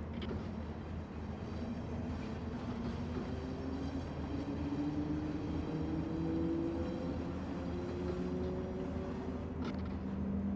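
An electric locomotive's motors hum and whine, rising in pitch as the train speeds up.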